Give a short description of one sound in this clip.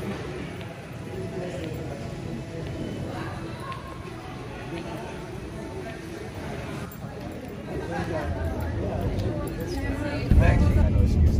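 Footsteps echo in a large hall.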